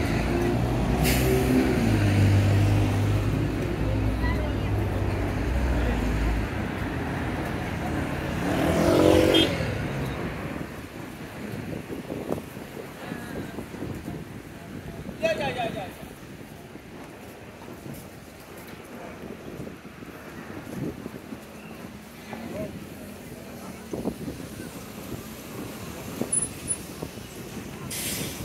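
Traffic rumbles past on a busy street outdoors.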